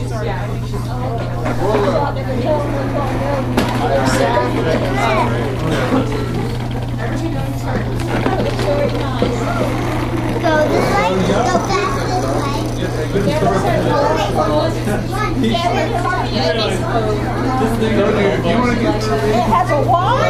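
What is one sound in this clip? Young children chatter and babble.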